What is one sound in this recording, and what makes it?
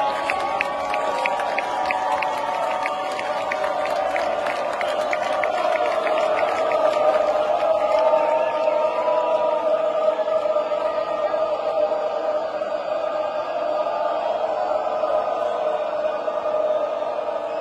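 A large crowd cheers and sings loudly outdoors.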